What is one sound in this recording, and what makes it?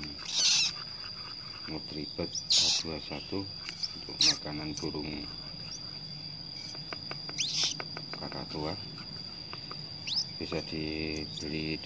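A syringe stirs thick liquid in a cup.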